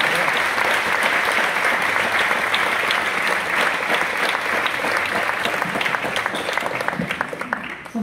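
A large audience applauds in an echoing hall, the clapping thinning out toward the end.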